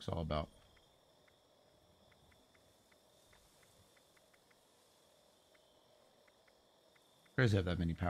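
Soft menu clicks tick quickly and evenly.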